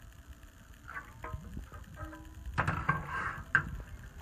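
A metal pan clinks against a stovetop.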